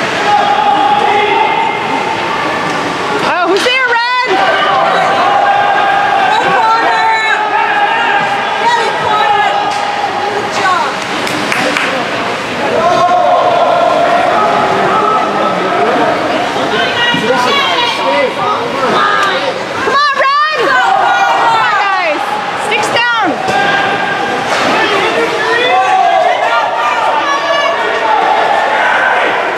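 Spectators chat nearby in a large echoing arena.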